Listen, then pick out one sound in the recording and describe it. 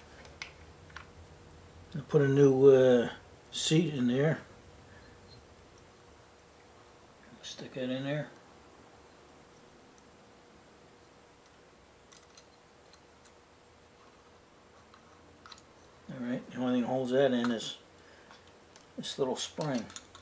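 Small metal parts click softly as they are handled.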